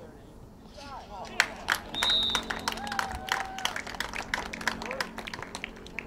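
A crowd of spectators cheers and shouts outdoors after a goal.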